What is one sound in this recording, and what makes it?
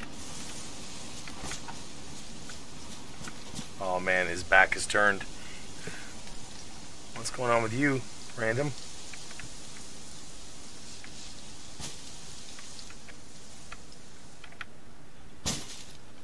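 Footsteps rustle through dry undergrowth.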